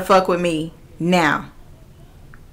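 A young woman speaks briefly with animation, close to a microphone.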